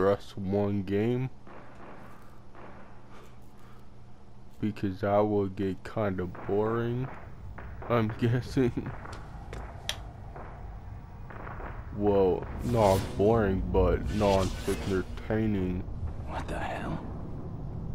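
A man speaks tensely in a low voice.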